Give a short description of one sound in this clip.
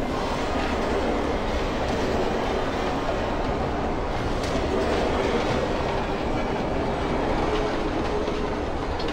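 A vehicle's engine roars steadily.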